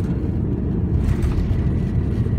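Aircraft wheels thump onto the runway.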